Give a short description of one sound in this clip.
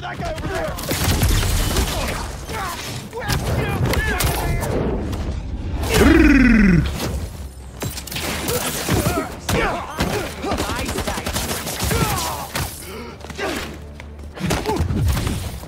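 Punches and kicks thud in a video game fight.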